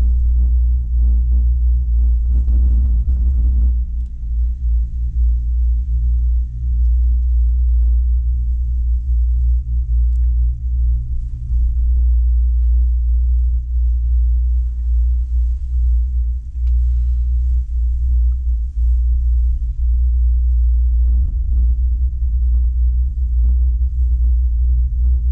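Wind-driven snow hisses against the helmet and jacket.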